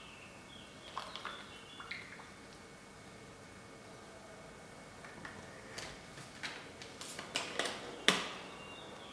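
Plastic knocks and clicks on a table.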